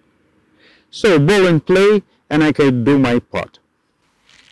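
An older man speaks calmly and clearly, close by.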